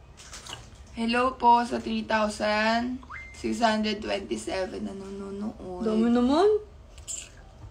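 A young woman speaks close to a phone microphone.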